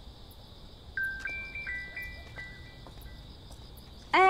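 A phone beeps with a short series of tones.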